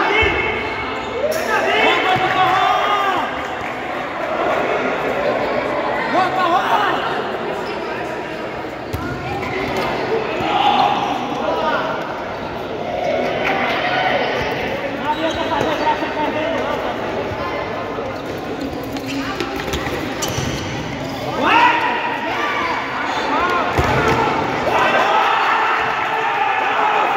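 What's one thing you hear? Young men shout and call out to each other in a large echoing hall.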